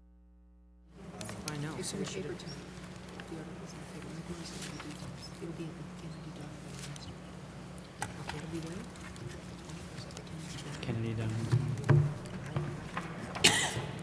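Several adults talk quietly in a large, echoing room.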